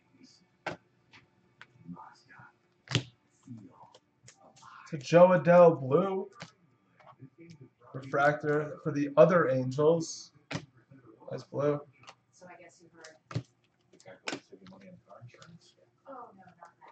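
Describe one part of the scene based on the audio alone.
Trading cards flick and rustle as they are shuffled by hand.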